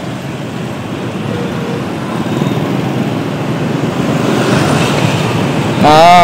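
Many motorbike engines hum and buzz in busy street traffic.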